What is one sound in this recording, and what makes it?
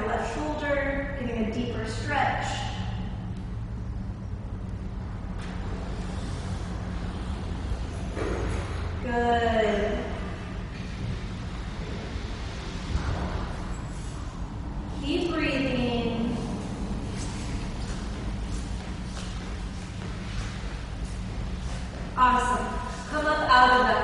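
A woman speaks calmly nearby, with long pauses.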